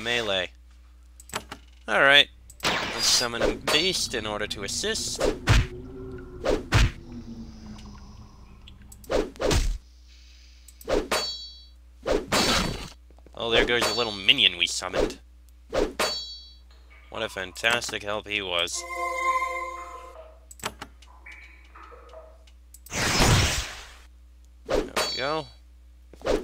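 Weapons clash and strike in quick bursts during a fight.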